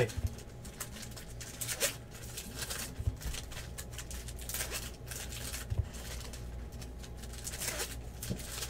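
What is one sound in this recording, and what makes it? Foil card packs crinkle and rustle as hands tear them open.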